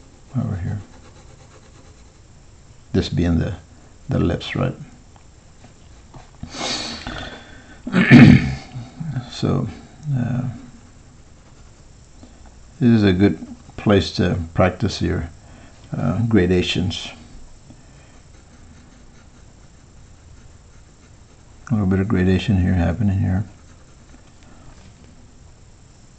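A pencil scratches and rubs softly on paper.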